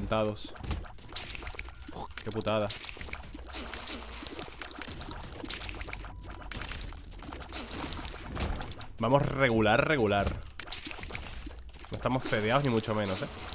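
Video game sound effects pop and splat rapidly.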